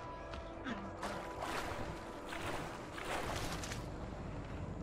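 Water splashes as something wades through a stream.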